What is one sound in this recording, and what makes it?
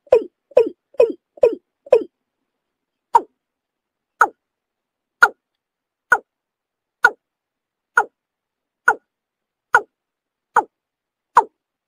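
A water bird calls with short, sharp notes, quickly at first and then slower and higher.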